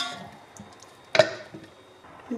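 Metal tongs clink against a pot.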